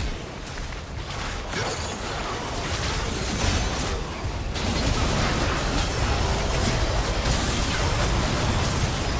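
Magic spells whoosh, crackle and burst.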